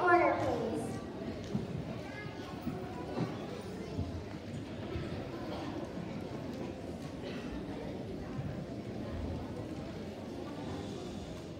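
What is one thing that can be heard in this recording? An audience murmurs softly in a large hall.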